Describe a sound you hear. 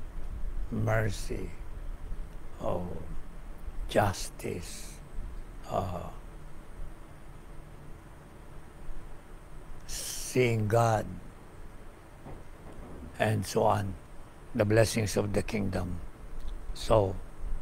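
An elderly man speaks calmly and slowly into a nearby microphone, with pauses.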